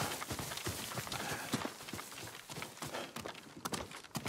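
Footsteps rustle through grass and then tread on rock.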